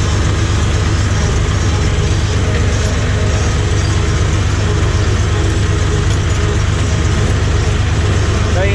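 A tractor engine rumbles loudly and steadily close by.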